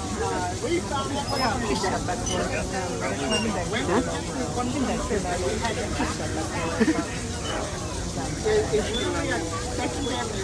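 A subway train rumbles as it starts to move.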